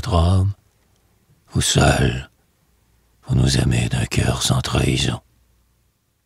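An elderly man recites slowly and solemnly into a close microphone.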